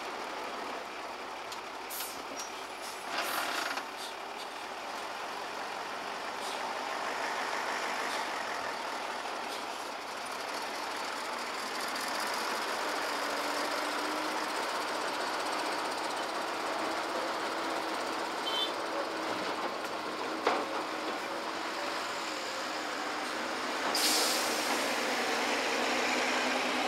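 A diesel excavator engine rumbles steadily outdoors.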